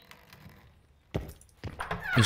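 A heavy wooden door thuds open.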